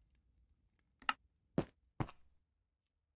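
Blocks thud into place in a video game.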